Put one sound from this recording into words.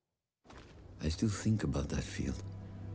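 A young man speaks quietly and wearily, close by.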